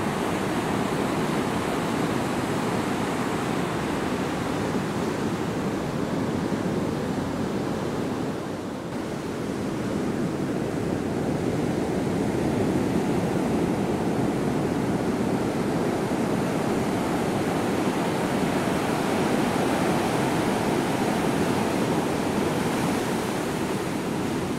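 Ocean waves break and roar.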